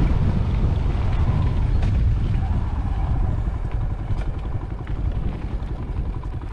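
Tyres crunch over a gravel track.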